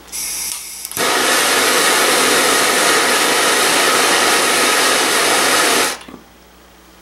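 A gas torch roars loudly and steadily.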